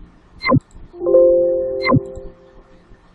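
A computer alert chime rings out.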